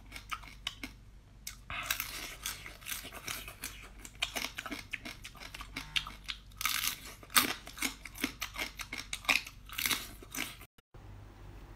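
A woman crunches and chews crab shells close to a microphone.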